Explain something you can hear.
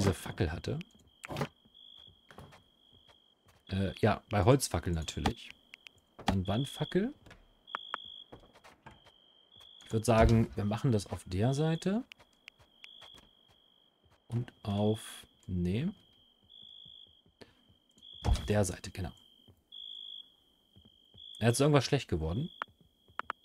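A young man talks calmly and close to a microphone, in short bursts.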